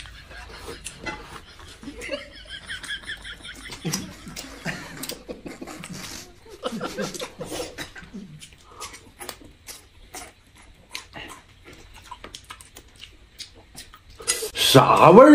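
Two people chew and slurp food up close.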